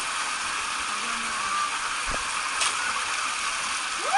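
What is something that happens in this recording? A man splashes down a water slide.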